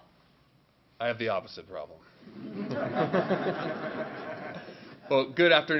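A second man laughs and speaks into a microphone.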